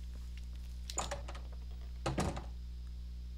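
A heavy wooden door opens with a thud.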